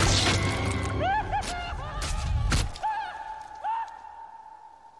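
A young woman whimpers in muffled distress close by.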